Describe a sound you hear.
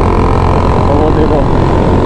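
A single-cylinder motorcycle thumps alongside.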